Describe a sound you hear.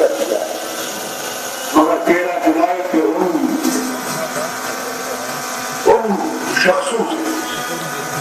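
An elderly man speaks forcefully into a microphone over a loudspeaker, with a slight echo outdoors.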